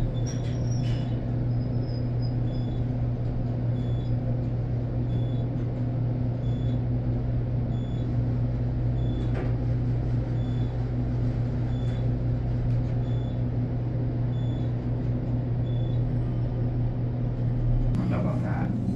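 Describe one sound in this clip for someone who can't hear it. A short beep sounds at regular intervals as the elevator passes each floor.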